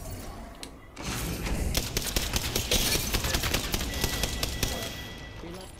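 Automatic gunfire rattles in a video game.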